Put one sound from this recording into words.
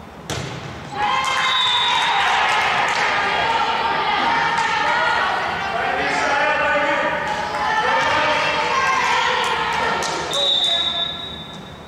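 Players and spectators cheer and shout loudly in an echoing gym.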